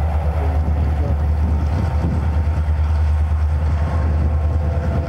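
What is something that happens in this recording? Diesel locomotives rumble loudly nearby with a deep, steady engine drone.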